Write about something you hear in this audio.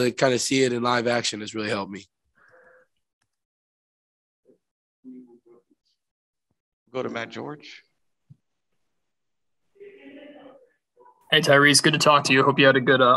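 A young man speaks calmly into a microphone, pausing between phrases.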